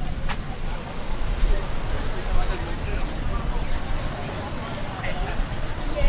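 A motorbike rides past.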